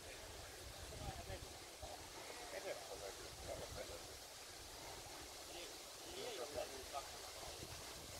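A man talks quietly at a distance.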